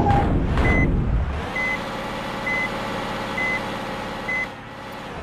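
A digger's engine rumbles steadily.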